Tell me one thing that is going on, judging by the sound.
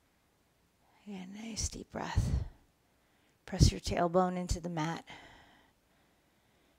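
A woman speaks calmly and softly into a close microphone.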